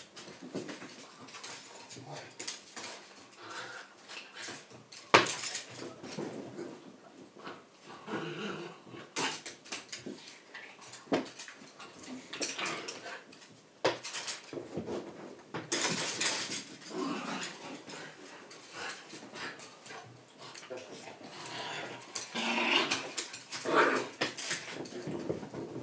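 A small dog's paws scrabble and thump nearby.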